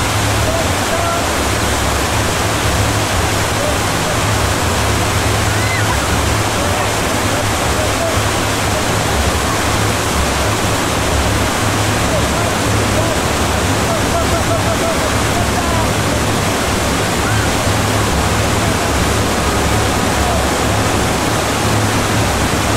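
Whitewater rapids roar loudly and steadily.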